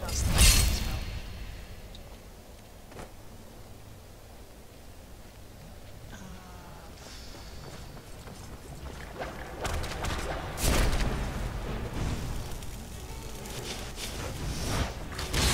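Magic crackles and hums softly.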